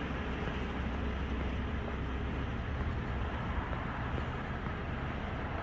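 Tyres hiss steadily on a wet road.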